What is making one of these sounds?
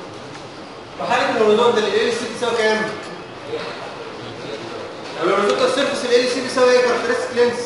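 A man speaks calmly, as if explaining.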